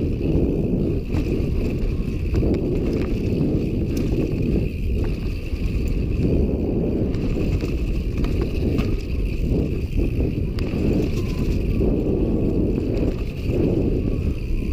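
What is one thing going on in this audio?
Bicycle tyres rumble over a rough dirt trail.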